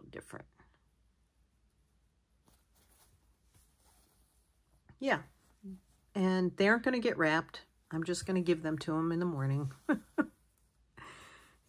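Cloth rustles softly while a needle and thread are pulled through it by hand.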